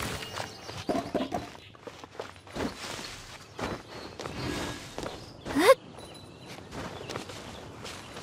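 Feet and hands scuff against rock while climbing.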